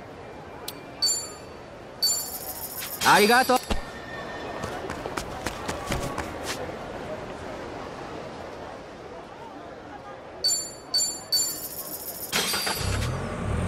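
Short electronic menu chimes beep several times.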